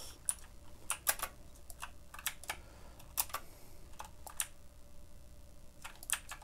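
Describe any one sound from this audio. Pistol shots crack out in short bursts.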